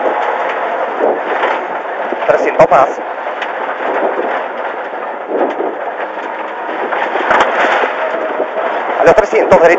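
A rally car engine roars loudly at high revs from inside the cabin.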